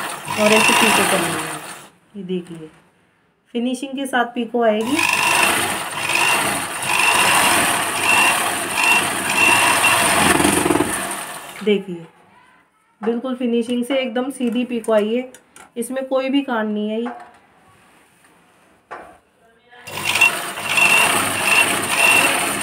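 A sewing machine runs with a fast, steady rattle.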